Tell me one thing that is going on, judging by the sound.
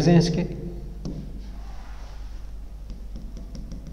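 A pen taps lightly on a board.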